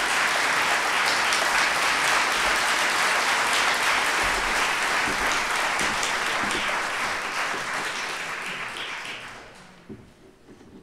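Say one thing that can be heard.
An audience applauds loudly in a large hall, then the applause fades away.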